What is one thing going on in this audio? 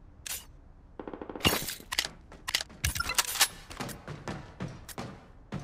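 Rifle shots fire in rapid bursts in a video game.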